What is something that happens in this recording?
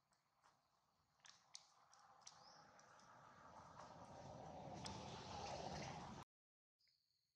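Dry leaves crackle under a monkey's footsteps.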